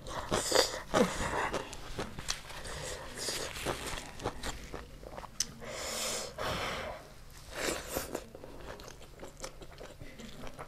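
Fingers squish and rustle through rice.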